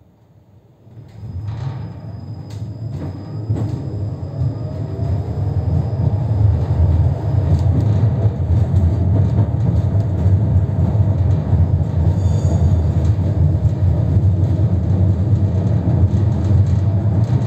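A tram rumbles along its rails, growing louder as it picks up speed.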